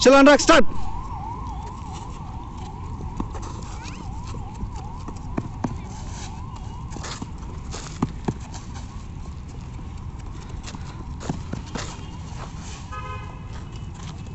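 Footsteps run and scuff on concrete outdoors.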